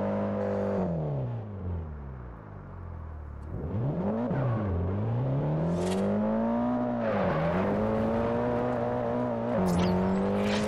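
A car engine revs hard, rising and dropping in pitch with each gear change.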